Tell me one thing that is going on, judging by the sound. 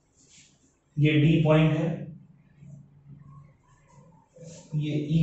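A man speaks nearby in a calm, explaining voice.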